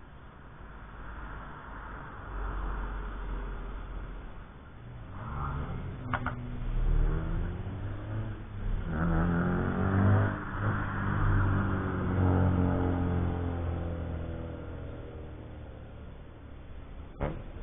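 Wind blows across an open space.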